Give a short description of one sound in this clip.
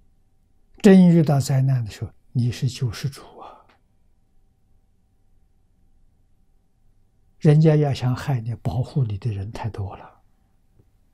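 An elderly man speaks calmly and warmly into a close microphone, pausing between phrases.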